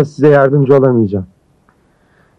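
A man speaks forcefully nearby.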